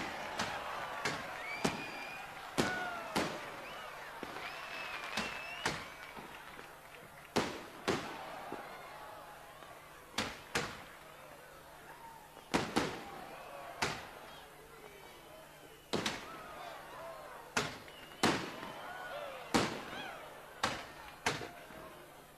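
Fireworks burst with loud booms, one after another.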